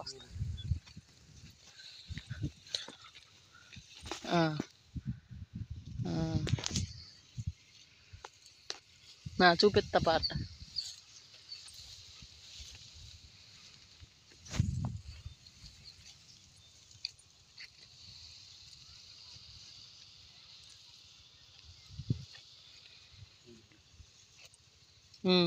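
Leafy plants rustle as they are brushed by hand.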